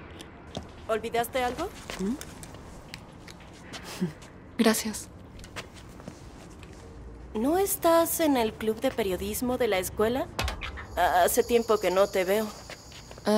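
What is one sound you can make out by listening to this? A young woman speaks cheerfully.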